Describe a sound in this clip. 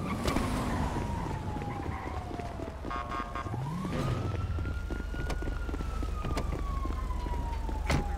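Footsteps run quickly on pavement.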